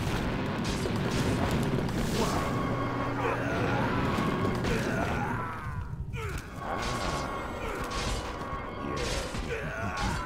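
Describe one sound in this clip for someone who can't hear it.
Weapons clash and magic spells burst in a fight.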